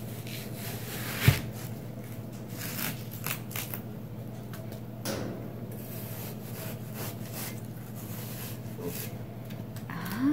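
A knife scrapes and crunches through watermelon rind.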